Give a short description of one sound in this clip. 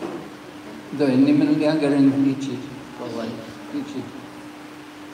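An elderly man chants into a microphone, heard through a loudspeaker.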